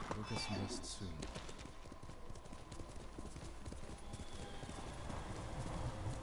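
Horse hooves thud at a gallop over grass.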